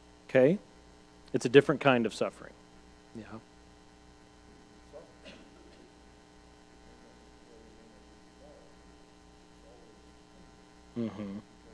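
A man speaks calmly in a room, with long pauses.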